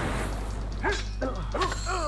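Flames burst with a whoosh.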